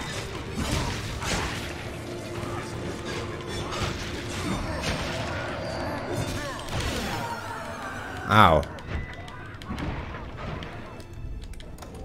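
Magic spells crackle and whoosh in a fight.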